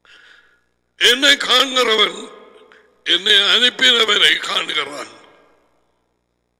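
A middle-aged man speaks with animation, close through a headset microphone.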